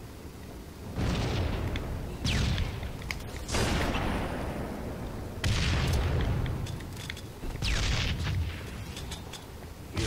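A rifle fires in repeated bursts of shots.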